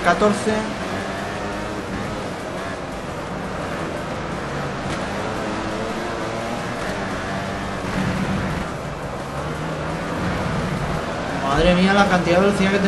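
A motorcycle engine roars, revving up and down through gear changes.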